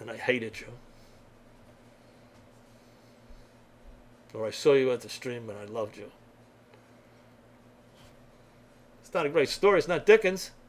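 An elderly man speaks calmly into a computer microphone, in short bursts with pauses.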